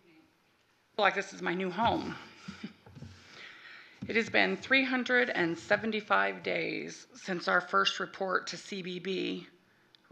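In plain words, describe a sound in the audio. A woman speaks steadily into a microphone, reading out.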